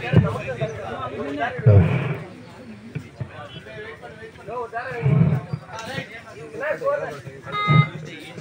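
A man commentates with animation through a loudspeaker.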